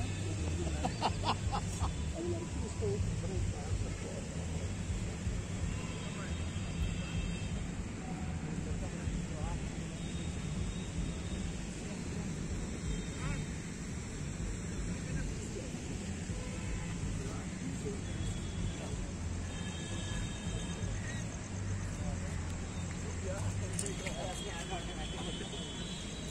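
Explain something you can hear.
Men and women chat quietly at a distance outdoors.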